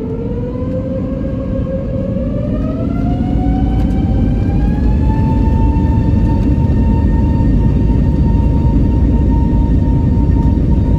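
Jet engines roar and whine, rising in pitch as an airliner speeds up on the runway.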